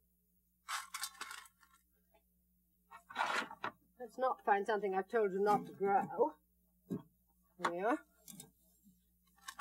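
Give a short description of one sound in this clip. Leaves rustle as hands brush through potted plants.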